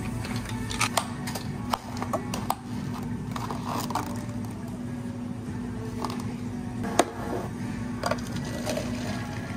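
Plastic cups knock and rattle on a counter.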